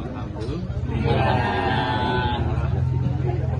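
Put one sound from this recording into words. A woman speaks up close, loudly and cheerfully.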